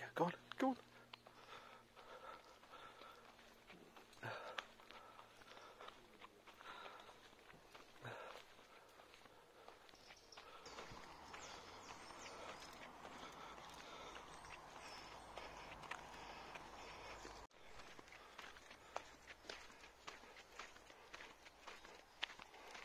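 Footsteps fall on a paved path outdoors.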